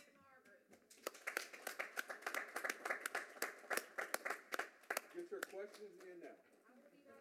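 A small group of people applaud.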